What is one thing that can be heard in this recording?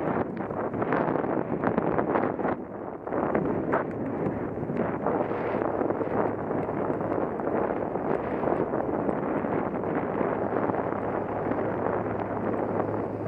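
Tyres roll and crunch over a dirt path.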